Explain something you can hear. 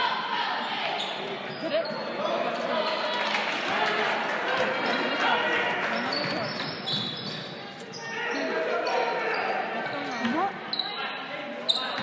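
Sneakers squeak on a hardwood court.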